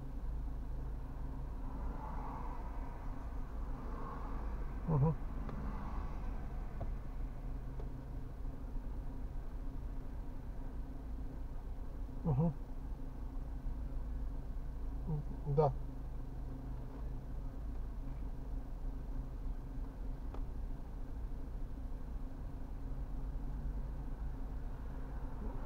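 A car engine idles steadily, heard from inside the car.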